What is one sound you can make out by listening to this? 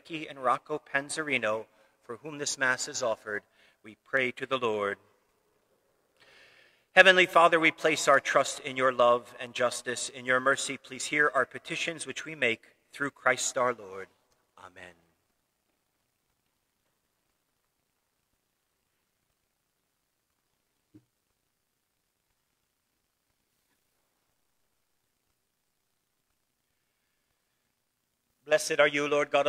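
An elderly man speaks slowly and solemnly into a microphone in an echoing hall.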